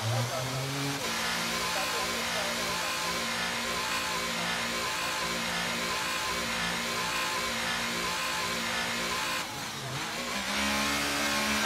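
A racing car engine hums steadily at low speed.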